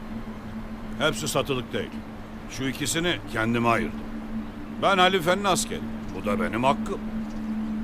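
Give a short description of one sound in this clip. An elderly man speaks in a low, calm voice.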